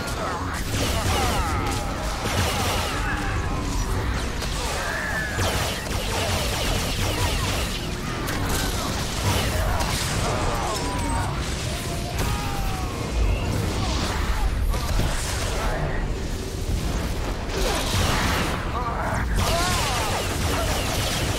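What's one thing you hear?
Game spell effects crackle and whoosh in a busy battle.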